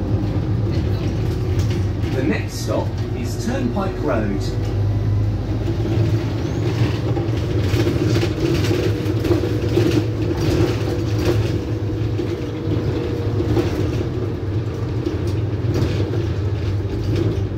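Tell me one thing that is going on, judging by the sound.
A bus engine hums and rumbles steadily from inside the bus.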